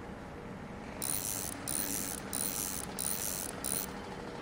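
A ratchet wrench clicks as it turns a bolt.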